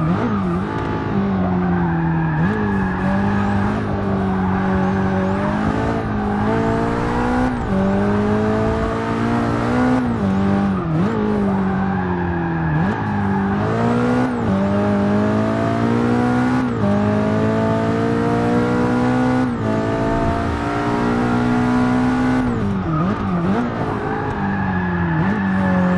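A racing car engine roars, revving up through the gears and dropping with each shift.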